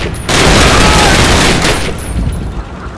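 Rifles fire in rapid bursts nearby.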